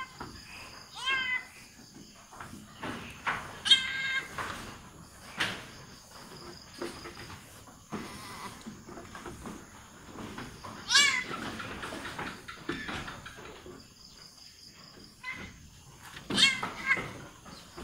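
A goat bleats in distress.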